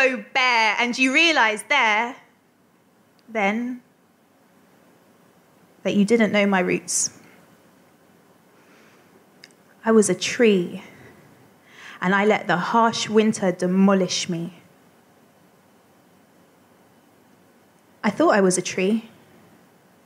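A woman speaks close to a microphone in short phrases with pauses.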